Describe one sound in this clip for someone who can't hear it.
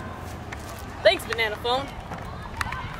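A young boy speaks brightly and close by.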